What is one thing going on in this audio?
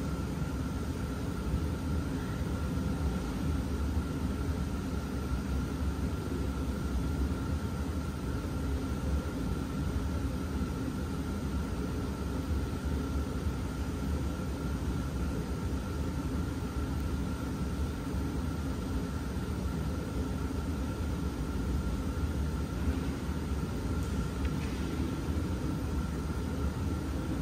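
Water bubbles and churns steadily in a hot tub, echoing in a large indoor hall.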